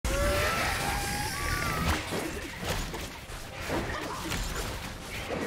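Magic blasts crackle and whoosh as fighters clash.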